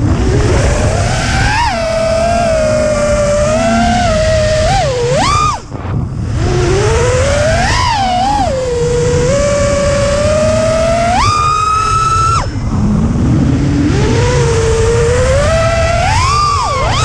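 A small racing drone's motors whine loudly, rising and falling sharply in pitch.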